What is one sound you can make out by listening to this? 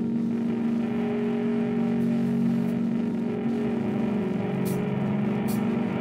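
A rock band plays loudly with distorted electric guitars.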